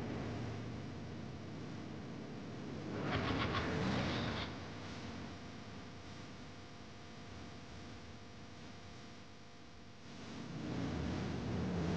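An electric welding arc crackles and hisses steadily.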